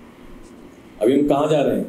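A man speaks loudly and close to a microphone.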